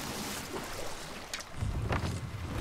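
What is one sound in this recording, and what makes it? Water splashes against a small wooden boat.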